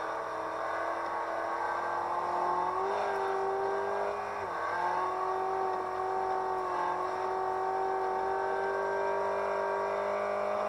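A car engine drones steadily, dipping briefly as it shifts gear.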